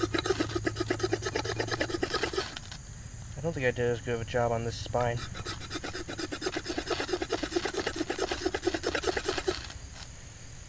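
A knife scrapes and shaves wood with quick, steady strokes.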